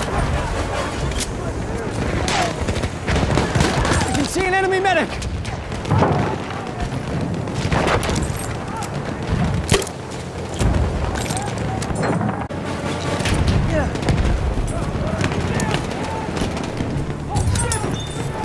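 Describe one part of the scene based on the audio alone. Gunshots crack and boom repeatedly around a battlefield.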